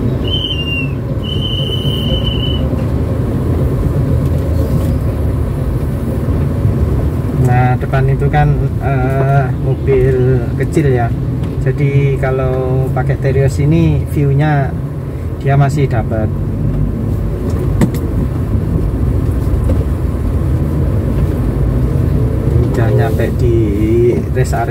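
A car engine hums steadily while driving.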